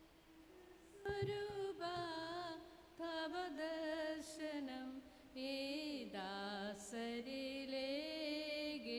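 A man chants in a slow, sung voice through a microphone.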